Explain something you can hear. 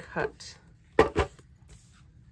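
A paper punch snaps shut with a sharp click.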